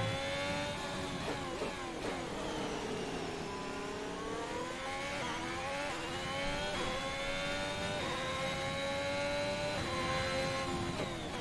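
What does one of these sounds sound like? A racing car engine screams, its pitch rising and falling as it shifts gears.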